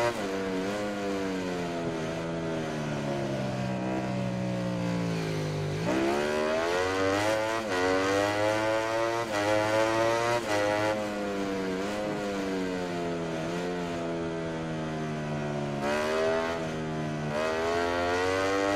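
A motorcycle engine screams at high revs, dropping in pitch through gear shifts and braking, then rising sharply as it accelerates.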